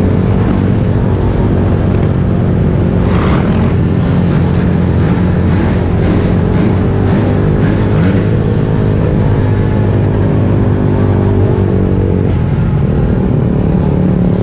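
Many motorbikes and scooters buzz along together nearby.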